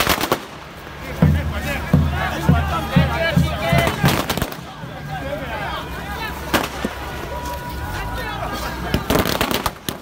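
A crowd of men shouts and cheers loudly outdoors.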